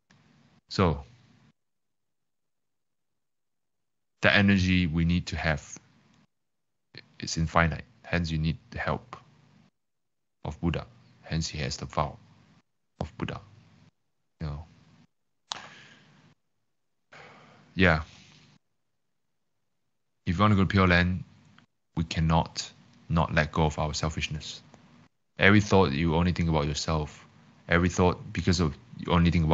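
A young man speaks calmly into a microphone over an online call, pausing often.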